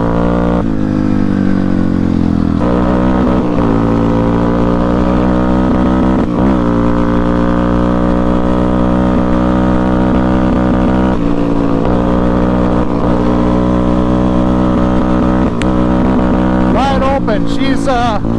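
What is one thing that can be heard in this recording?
A motorcycle engine hums steadily close by, its pitch shifting as the rider changes gears.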